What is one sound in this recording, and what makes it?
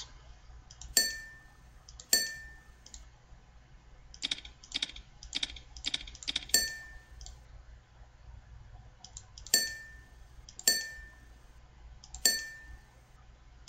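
Short bright chimes ring out now and then.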